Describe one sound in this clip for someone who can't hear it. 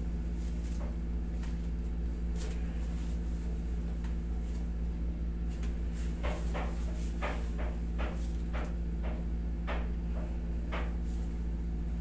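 Joints crack and pop in short sharp snaps.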